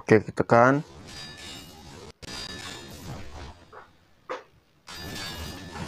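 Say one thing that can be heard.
Chained blades whoosh as they swing through the air.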